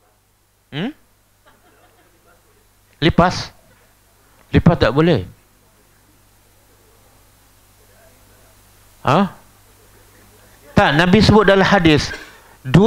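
A middle-aged man speaks through a clip-on microphone, in short bursts with pauses.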